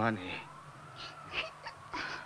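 A young girl sobs.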